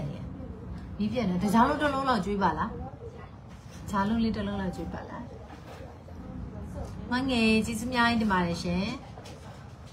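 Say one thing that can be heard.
A young woman speaks with animation close to a microphone.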